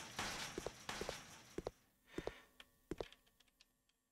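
Footsteps thud in pairs on a hard floor.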